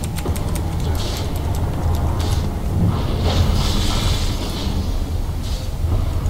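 Magic spells whoosh and crackle during a fight in a video game.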